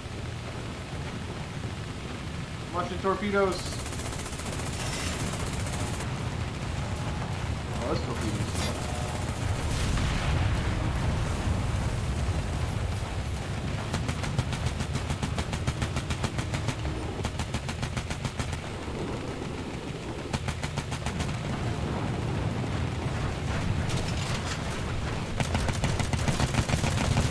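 Water rushes and splashes against a hull.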